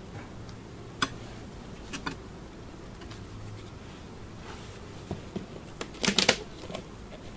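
Wooden hive boxes knock and scrape as a beekeeper handles them.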